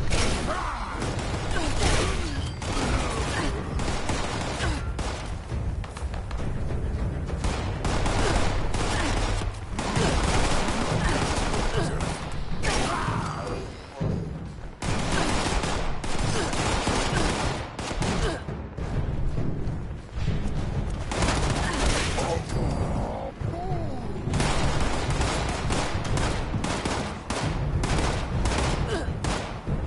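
Heavy melee blows thud and squelch again and again.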